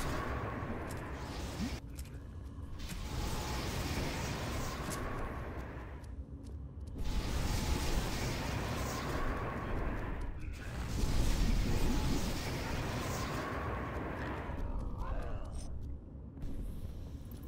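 Fire spells roar and crackle in bursts.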